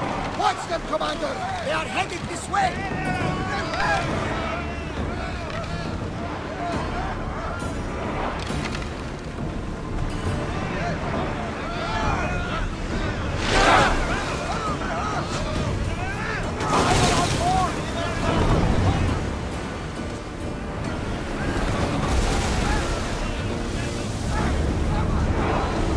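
Rough sea waves surge and crash against a wooden ship's hull.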